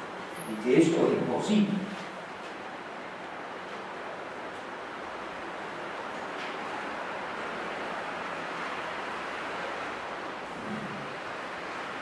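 An elderly man speaks calmly into a microphone over loudspeakers in an echoing hall.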